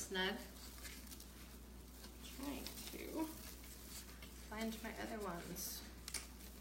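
Plastic mesh rustles and crinkles under hands.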